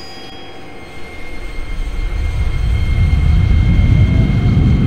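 A train's motor hums and rumbles louder as the train pulls away.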